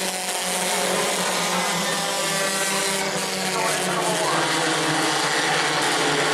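Many race car engines roar loudly as the cars speed around a track.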